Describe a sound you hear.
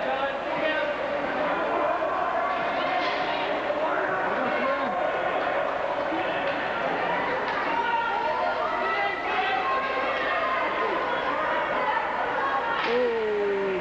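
A crowd of adults and children chatters and calls out in a large echoing hall.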